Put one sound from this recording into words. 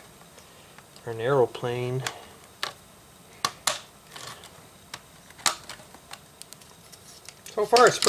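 Plastic toy bricks click and snap together.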